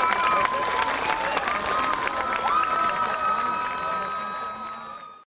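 A marching band holds a long brass chord outdoors that slowly fades.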